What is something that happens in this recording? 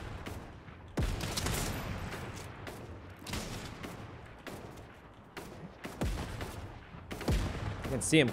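A rifle fires single loud shots that ring out.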